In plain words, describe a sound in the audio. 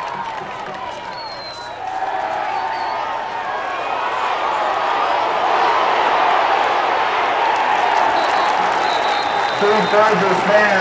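Many people shout and chatter nearby.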